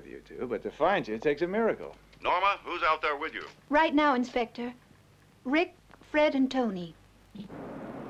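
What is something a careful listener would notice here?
A young woman speaks tensely.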